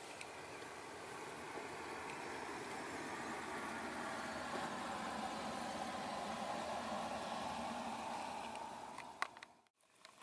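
A vehicle engine rumbles as it drives slowly.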